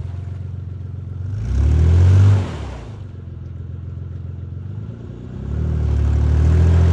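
A truck engine rumbles in the distance and revs up loudly in bursts.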